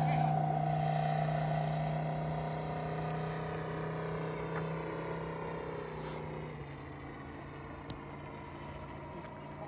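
A small propeller plane's engine drones steadily overhead and slowly fades into the distance.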